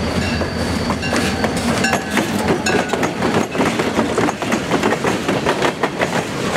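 Freight cars squeal and rattle as they roll past close by.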